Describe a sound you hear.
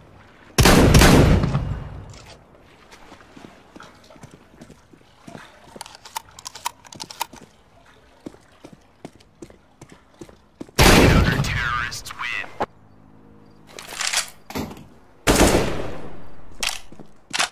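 A shotgun fires loud booming blasts.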